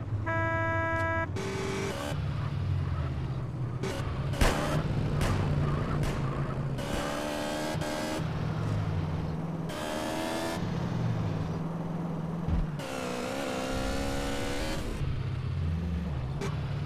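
A motorcycle engine hums and revs as the bike rides along.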